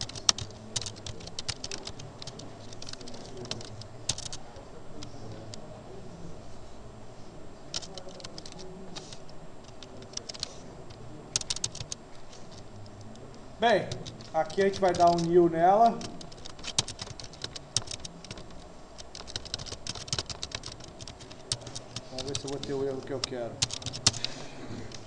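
A keyboard clicks with quick, uneven typing.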